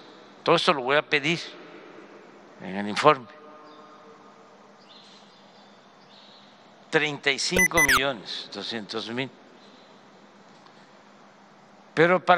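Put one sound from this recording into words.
An elderly man speaks calmly through a microphone, with pauses, in a large echoing hall.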